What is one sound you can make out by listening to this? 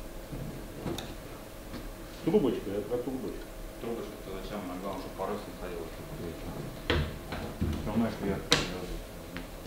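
Hands knock and tap on a boat's fittings.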